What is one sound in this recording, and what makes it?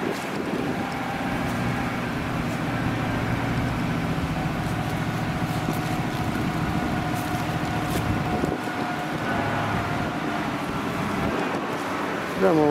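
A heavy truck engine rumbles and drives slowly away over a dirt road.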